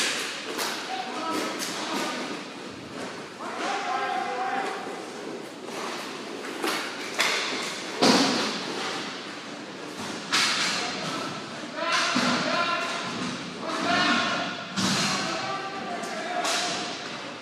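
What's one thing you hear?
Players call out and shout across the rink.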